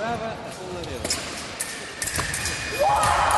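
Fencing blades clash with quick metallic clicks.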